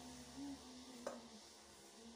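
A metal lid clinks against a pot.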